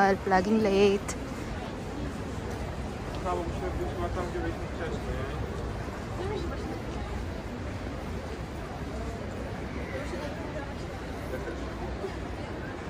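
Men and women chatter in a low murmur at a distance.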